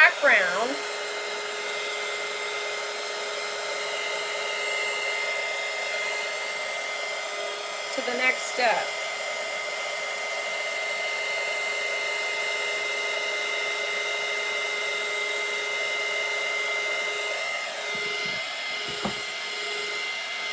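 A heat tool blows with a steady whirring hum.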